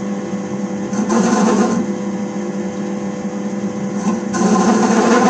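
A lathe tool scrapes against spinning metal in short harsh bursts.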